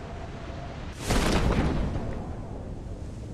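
A parachute opens with a sudden loud whoosh.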